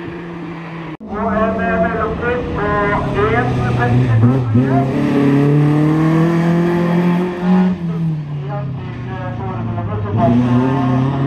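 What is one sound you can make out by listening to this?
A rally car engine whines through gear shifts while accelerating away.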